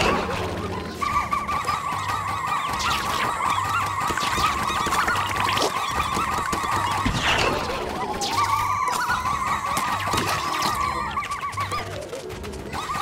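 Small creatures chirp and squeak in high, rapid chatter.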